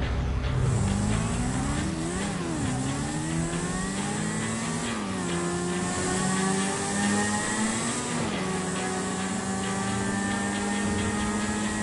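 A motorcycle engine revs and drones as it rides, rising and falling in pitch.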